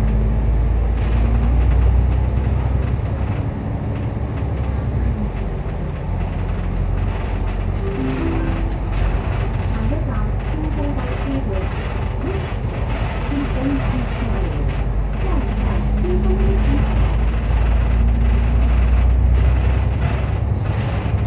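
City traffic hums in the street around.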